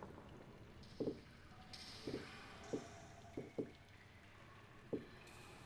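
Heavy footsteps thud slowly on a stone floor.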